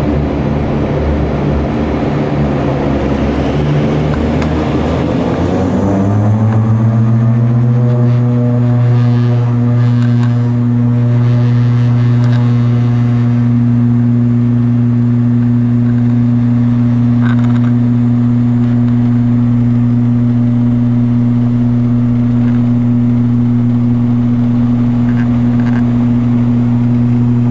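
A propeller engine drones loudly, close by, rising in pitch and then holding a steady hum.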